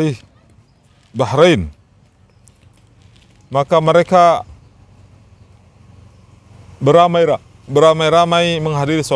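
A man recites in a chanting voice close by, outdoors.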